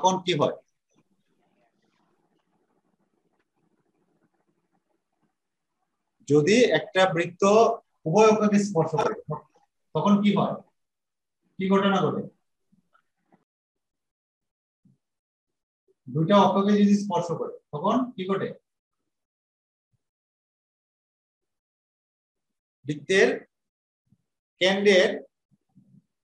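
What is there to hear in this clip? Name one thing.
A man speaks calmly close to a microphone, in short bursts with pauses.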